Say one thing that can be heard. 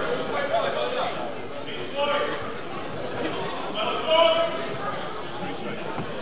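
Bare feet thump and shuffle on a mat.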